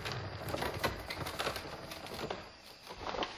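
An axe chops into wood with sharp knocks.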